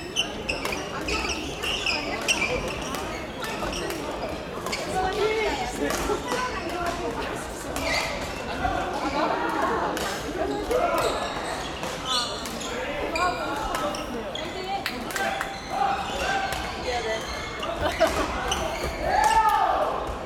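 Shuttlecocks pop sharply off rackets in a large echoing hall.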